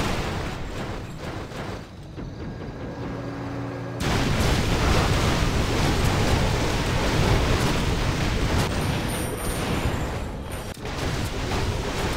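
Swords clash and spells crackle in a busy battle.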